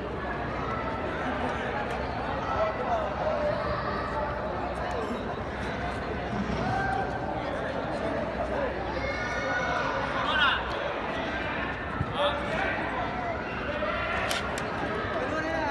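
Many voices murmur and chatter in a large echoing hall.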